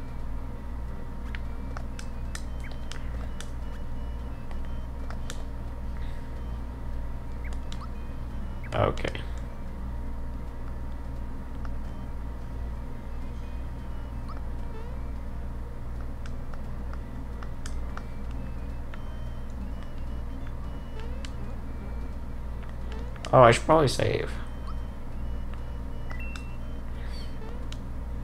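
Short electronic menu blips chirp now and then.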